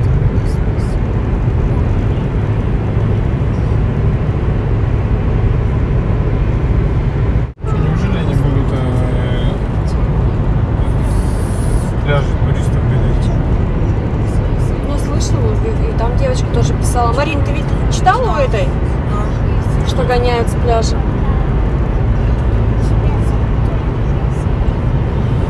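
Car tyres rumble steadily on a road from inside a moving car.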